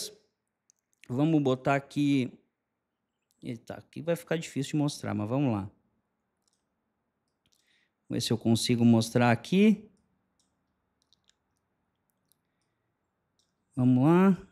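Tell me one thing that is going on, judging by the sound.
A man talks with animation into a close microphone, pausing between phrases.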